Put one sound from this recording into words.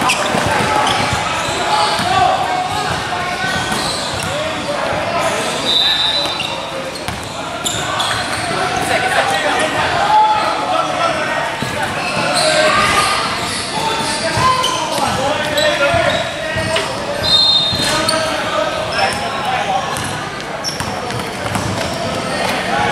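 A basketball bounces on a gym floor.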